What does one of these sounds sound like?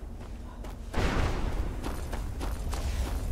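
A magical blast crackles and roars nearby.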